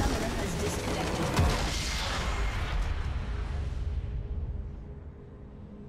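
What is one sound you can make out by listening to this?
A huge magical explosion booms and rumbles, then slowly fades away.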